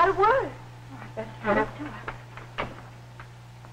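A door opens.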